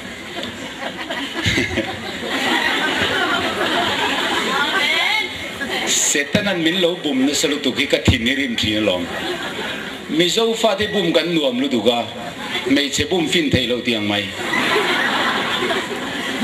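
A young man speaks with animation through a microphone and loudspeakers in an echoing hall.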